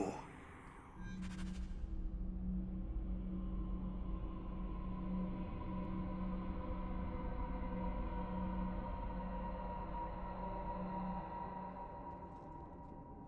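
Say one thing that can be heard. A low magical hum drones steadily.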